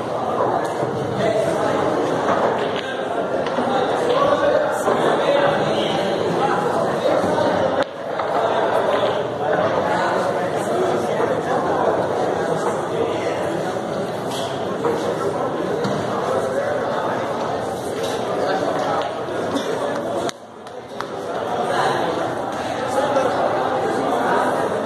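A crowd of men chatters in an echoing room.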